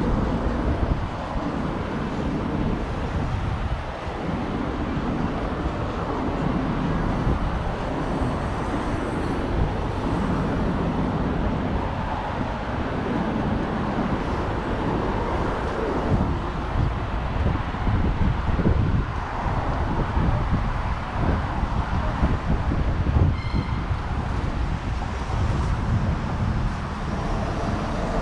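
City traffic rumbles steadily nearby.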